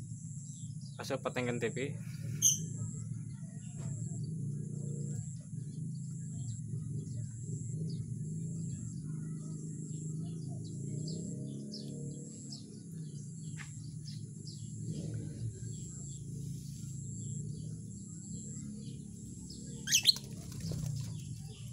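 Small parrots chirp and squeak close by.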